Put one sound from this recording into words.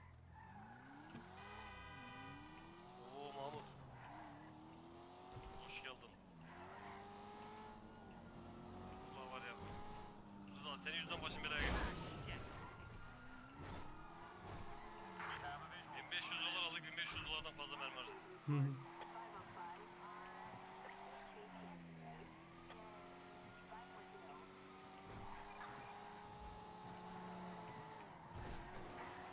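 A car engine revs and hums, rising and falling in pitch.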